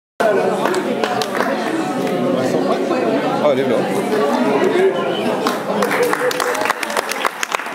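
A crowd of adults chatters in an echoing hall.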